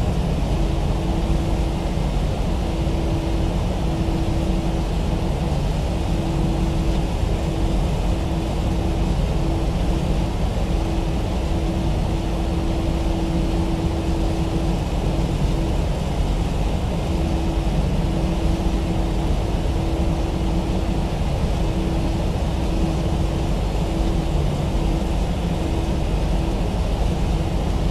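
Aircraft wheels rumble over a runway.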